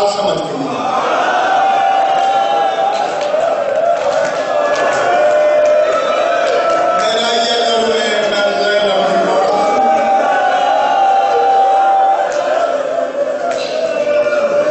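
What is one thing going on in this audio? A man chants in a sustained, wailing voice through a microphone.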